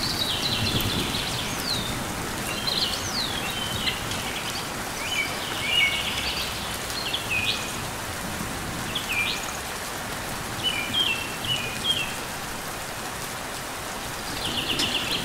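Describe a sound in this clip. A small bird chirps in short, high, sliding calls.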